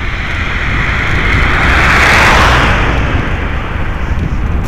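A car passes with a whoosh of tyres.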